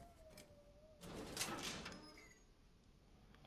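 Metal gate doors creak and rattle open.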